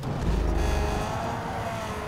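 Tyres screech during a slide.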